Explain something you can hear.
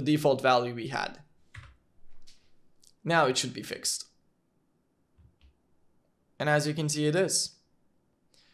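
A young man talks calmly and close to a microphone, in short bursts.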